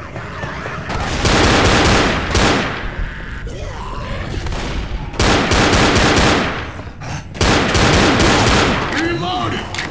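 Pistol shots fire in rapid bursts, loud and close.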